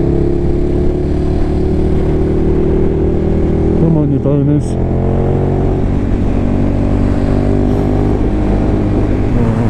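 A motorcycle engine hums steadily and shifts pitch as the rider changes speed.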